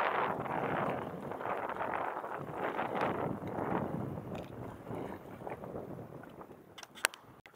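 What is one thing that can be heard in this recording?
Wind buffets the microphone in loud gusts.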